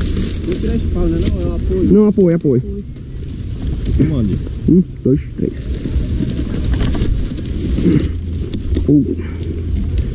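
Men talk close by in short, urgent phrases.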